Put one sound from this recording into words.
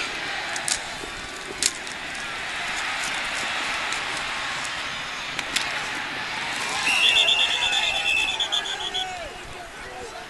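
A large crowd cheers and roars.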